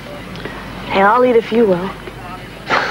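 A woman speaks softly at close range.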